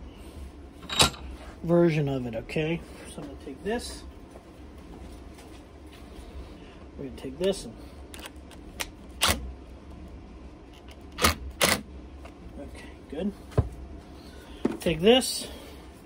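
Metal tools clink and tap against a vise.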